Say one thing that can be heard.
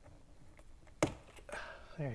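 A plastic trim piece pops loose with a sharp snap.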